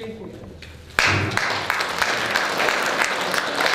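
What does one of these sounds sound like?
An audience applauds in a room.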